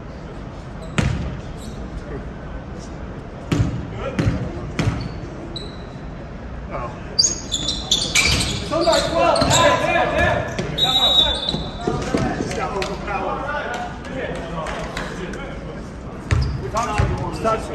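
A basketball bounces on a wooden gym floor, echoing in a large hall.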